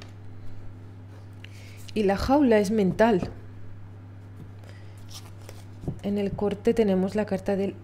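Playing cards slide and tap softly on a table.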